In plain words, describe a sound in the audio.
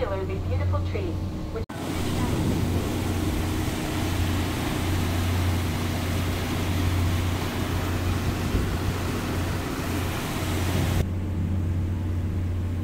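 A boat's engine hums low and steady.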